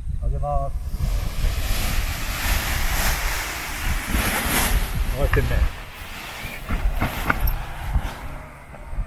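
A paraglider wing rustles and flaps as it fills with air.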